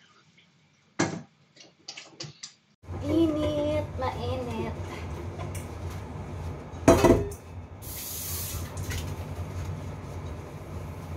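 Dishes and a metal pot clatter.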